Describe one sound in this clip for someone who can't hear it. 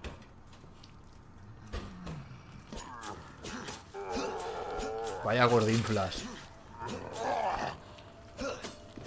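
A zombie groans and growls nearby.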